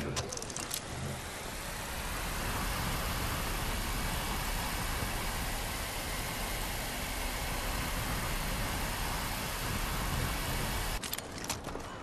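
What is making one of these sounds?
Wind rushes loudly past during a fast slide down a zip line.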